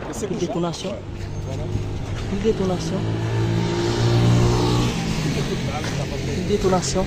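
A motorbike engine passes close by and fades.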